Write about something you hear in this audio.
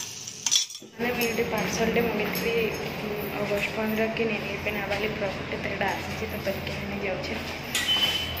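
A young woman talks calmly, close by.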